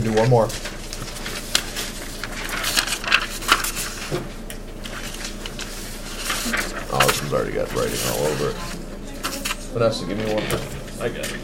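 Sheets of paper rustle and shuffle close by.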